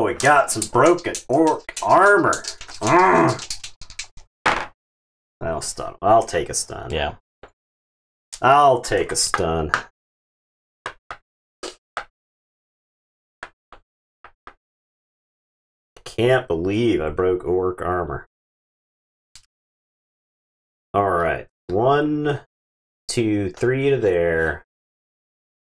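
A man talks with animation through a microphone, close up.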